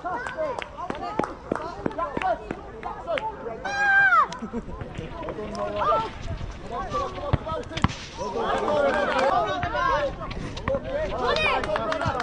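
Children shout and call out excitedly nearby, outdoors.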